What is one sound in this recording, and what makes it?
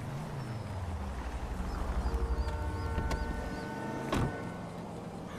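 A car engine rumbles low as a car pulls up and stops.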